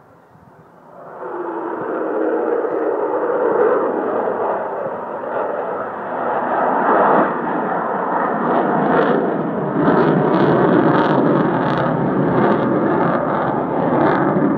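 A jet aircraft roars loudly overhead.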